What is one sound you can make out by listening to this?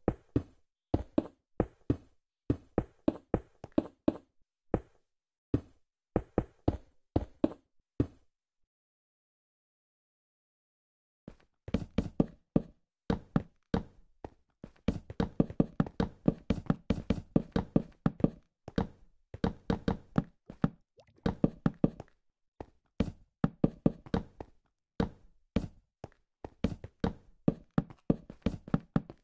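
Blocks thud down one after another in quick, short knocks.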